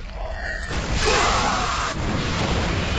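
Gunfire and blasts crackle in a battle.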